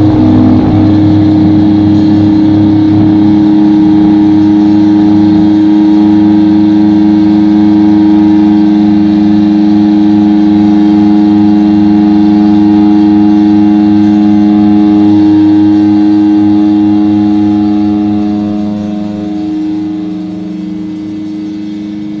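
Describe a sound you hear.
Drums pound in a steady pulse.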